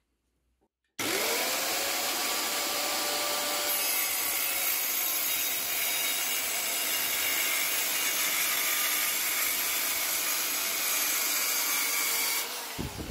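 A circular saw motor runs with a steady high whine.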